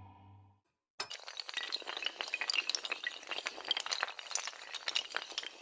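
Wooden pieces clatter and knock together rapidly.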